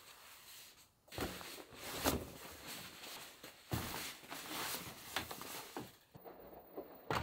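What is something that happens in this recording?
Pillows rustle as they are stuffed into a drum.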